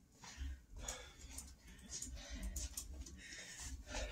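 Footsteps thud on a hard floor.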